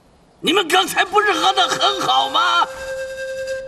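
An elderly man wails and sobs loudly up close.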